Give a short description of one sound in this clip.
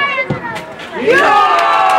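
Spectators nearby cheer loudly.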